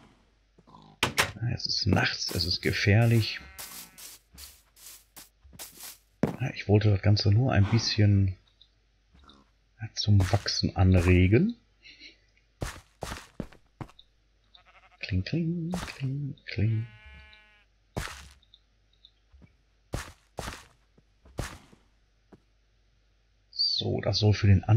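Footsteps crunch softly on grass and stone.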